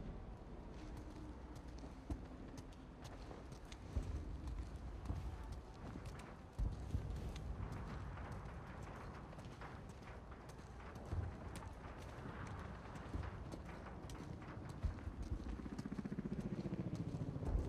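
Footsteps tread on the ground.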